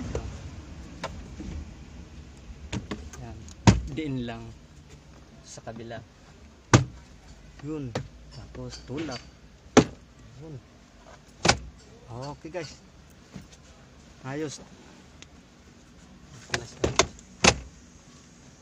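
Hard plastic parts click and knock close by.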